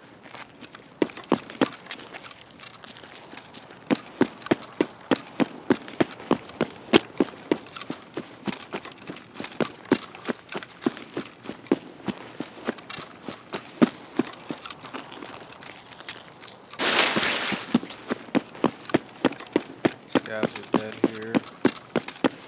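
Quick footsteps crunch on gravel.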